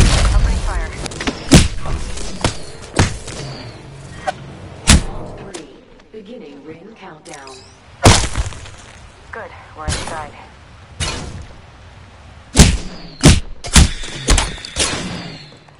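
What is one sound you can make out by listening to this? Electricity crackles and zaps.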